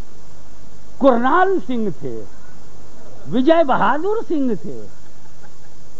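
An elderly man speaks with feeling into a microphone, heard through a loudspeaker.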